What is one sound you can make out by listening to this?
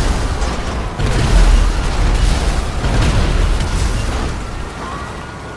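A tank cannon fires with a loud blast.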